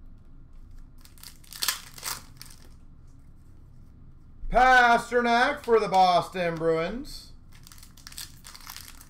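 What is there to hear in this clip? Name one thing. A plastic wrapper crinkles in hands handling a pack of cards.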